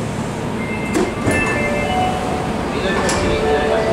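Train doors slide open with a clunk.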